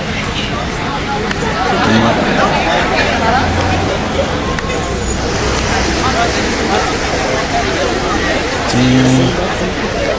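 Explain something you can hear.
A crowd of young people chatters outdoors nearby.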